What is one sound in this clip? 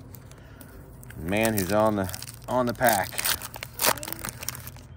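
A foil wrapper crinkles in a hand.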